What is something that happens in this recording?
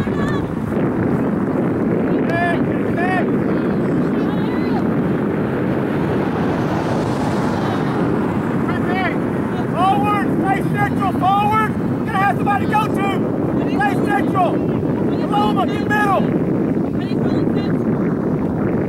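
Wind blows steadily across an open field.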